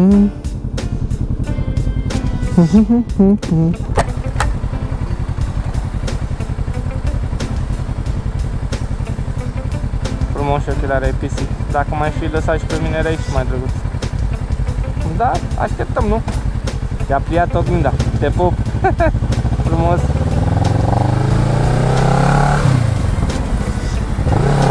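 A motorcycle engine idles with a low, throbbing rumble, then revs as the motorcycle pulls away.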